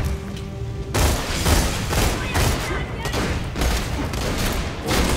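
Guns fire rapid bursts of loud shots.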